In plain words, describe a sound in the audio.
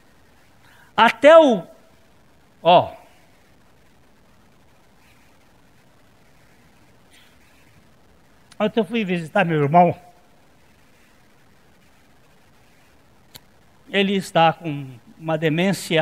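A middle-aged man speaks in short bursts with long pauses, through a microphone.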